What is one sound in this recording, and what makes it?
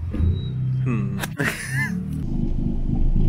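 A young man laughs briefly.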